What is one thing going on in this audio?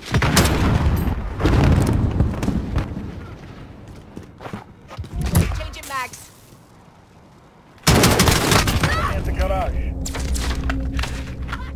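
Rifle gunfire rings out in loud, rapid bursts.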